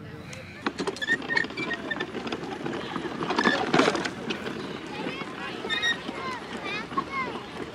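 A wagon's wheels rattle over bumpy grass.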